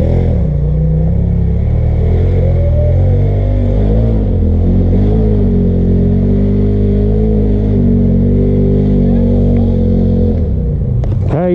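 A motorbike engine idles close by with a low, uneven rumble.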